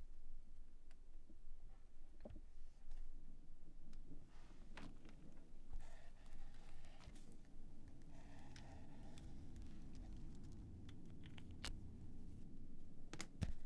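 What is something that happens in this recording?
Papers rustle and shuffle close by.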